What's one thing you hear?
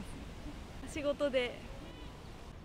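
A young woman speaks briefly into a microphone up close.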